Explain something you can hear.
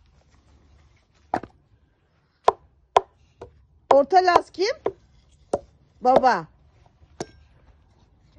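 A hammer knocks a nail into a log.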